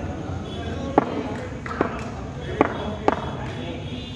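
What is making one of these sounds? A cricket bat taps on the ground.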